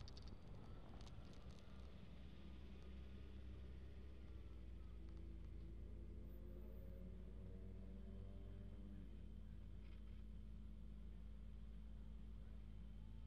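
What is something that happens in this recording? Car engines hum steadily in stopped traffic.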